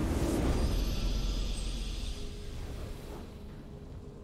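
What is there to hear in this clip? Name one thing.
A triumphant game fanfare rings out and fades away.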